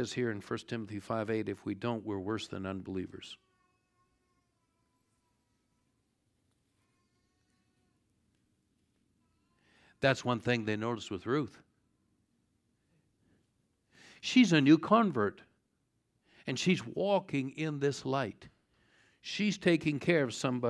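An older man speaks calmly through a microphone, pausing between phrases.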